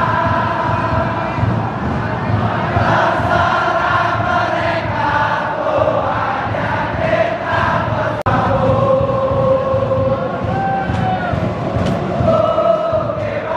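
A huge stadium crowd sings and chants loudly in unison.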